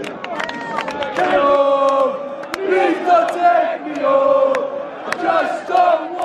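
Hands clap sharply among the crowd.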